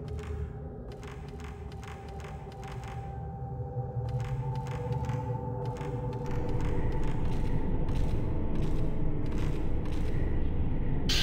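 Footsteps tap on creaking wooden floorboards.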